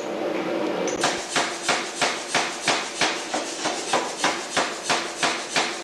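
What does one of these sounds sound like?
A power hammer pounds hot metal in fast, even blows.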